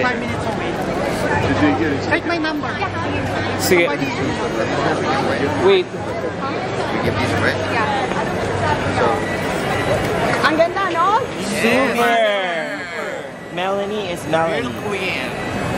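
A crowd chatters and murmurs outdoors.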